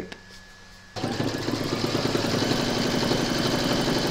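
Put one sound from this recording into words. A sewing machine runs with a steady whirring hum.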